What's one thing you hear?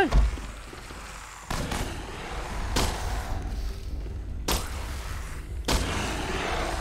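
Gunshots bang loudly with an echo.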